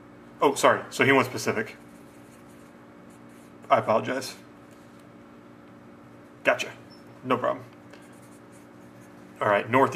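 A felt-tip marker squeaks across a card.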